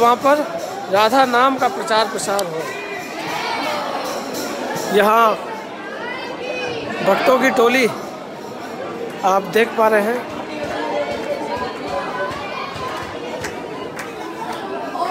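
A crowd of people sings together in a large echoing hall.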